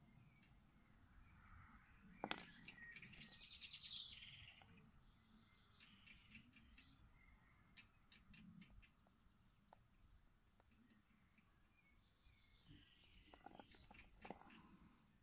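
A plastic pot creaks and clicks as hands handle it.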